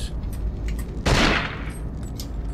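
A shot blasts loudly once.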